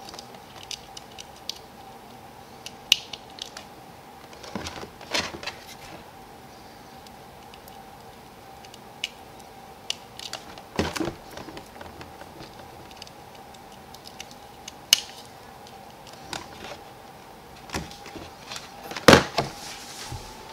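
Plastic parts click and rattle as hands handle wires and connectors.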